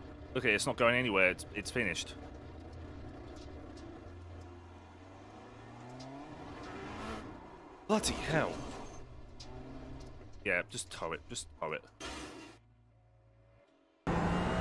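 A race car engine whines and shifts gears.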